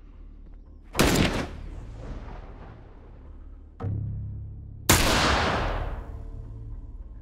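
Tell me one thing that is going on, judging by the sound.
A rifle fires loud shots that echo and fade.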